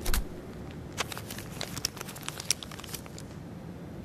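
Paper banknotes rustle as they are counted.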